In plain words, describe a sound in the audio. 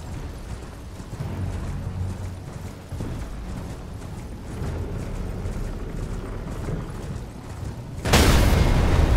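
Hooves gallop over grass.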